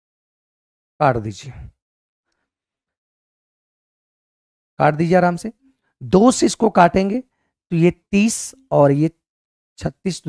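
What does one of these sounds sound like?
A man speaks into a close microphone, explaining with animation.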